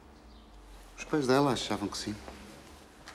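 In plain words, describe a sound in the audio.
A woman speaks softly and with feeling, close by.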